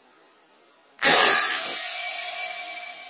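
A rifle fires a single sharp shot that echoes briefly.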